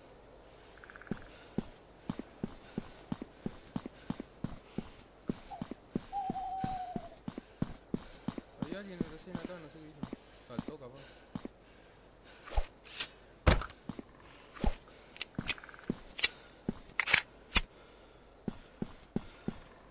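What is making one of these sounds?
Footsteps thud steadily on a hard surface.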